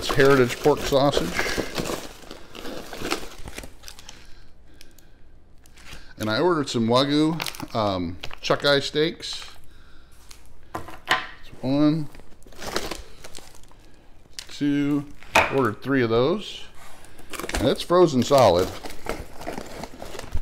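Cardboard rustles and scrapes as a box is unpacked.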